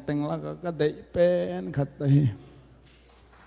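A man sings a drawn-out phrase through a microphone.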